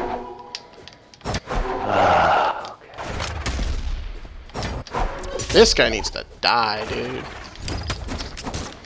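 Game weapons swoosh and strike with sharp hits.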